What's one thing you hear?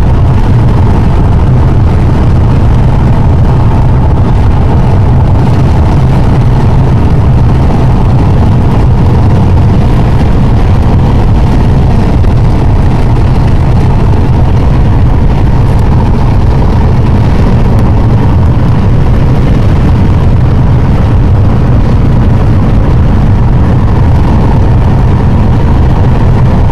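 A car drives along a road with a steady low rumble from inside.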